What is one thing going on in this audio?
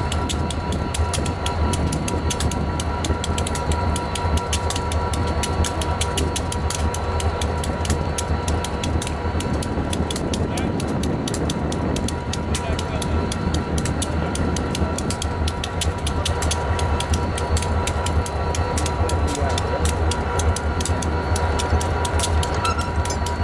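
Diesel locomotive engines idle with a deep, steady rumble.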